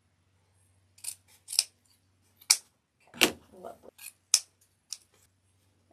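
Scissors snip through ribbon a few times.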